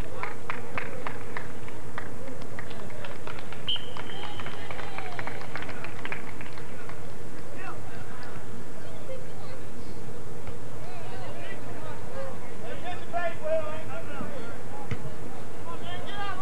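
Young men shout and call out to each other from across an open field.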